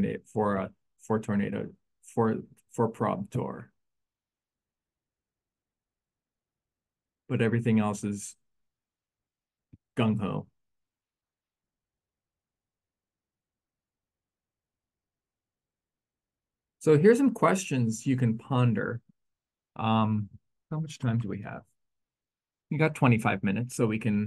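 A man speaks calmly into a microphone, in pauses.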